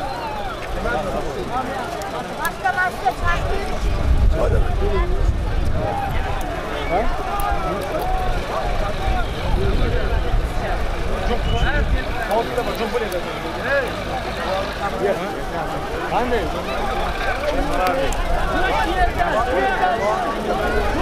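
Many men talk and call out at once outdoors.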